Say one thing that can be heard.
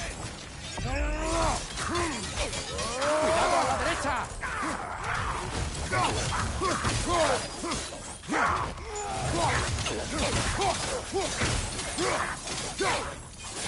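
Heavy blows and blades strike repeatedly in a fight.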